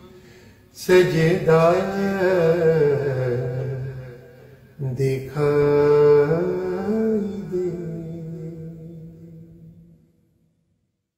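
A man chants slowly and melodically, close to the microphone.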